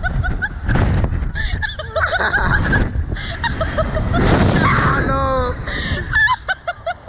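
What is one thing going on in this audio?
A young woman screams close by.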